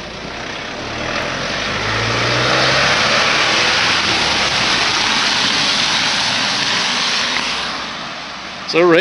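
A van drives past close by on a wet road.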